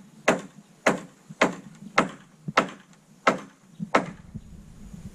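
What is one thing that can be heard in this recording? A hammer strikes wood in steady, ringing blows a short way off.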